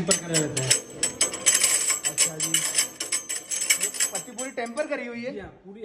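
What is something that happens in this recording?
A grinder's rotor spins with a fast rattling whir.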